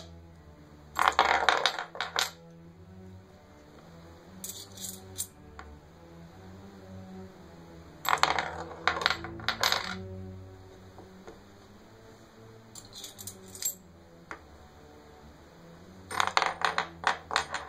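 A metal ball spins and rattles on a wooden board.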